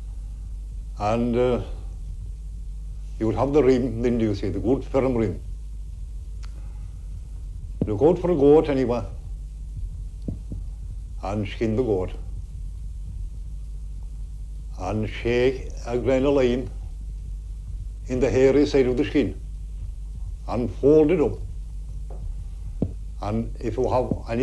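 An elderly man speaks slowly and calmly, in short phrases with pauses, close to a microphone.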